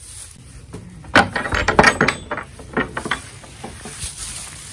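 A wooden door rattles and knocks as it is opened.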